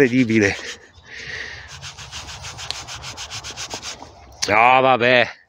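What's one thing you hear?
A gloved hand rubs briskly against cloth.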